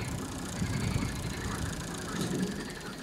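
A tractor engine runs nearby.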